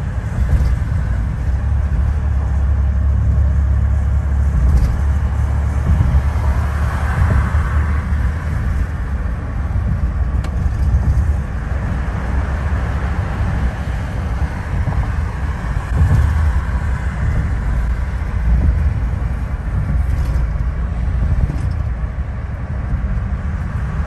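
A car's engine and tyres rumble steadily on a highway, heard from inside the car.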